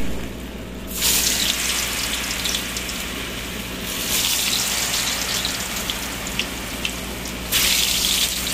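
Hot oil sizzles and crackles loudly as food fries.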